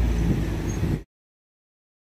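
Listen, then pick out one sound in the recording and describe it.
Traffic rumbles past outdoors in wind.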